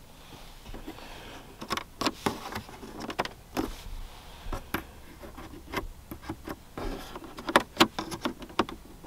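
A finger presses plastic buttons, which click softly.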